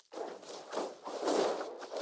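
A magical whoosh sweeps across as a spell is cast.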